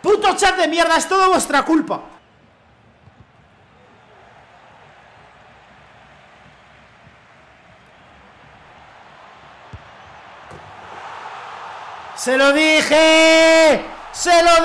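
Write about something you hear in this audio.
A young man speaks excitedly into a microphone.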